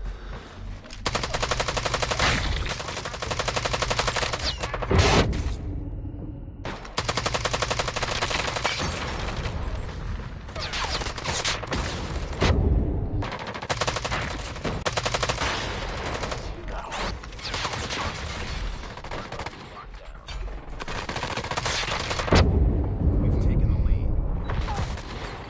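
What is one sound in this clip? Rapid automatic gunfire rattles in long bursts.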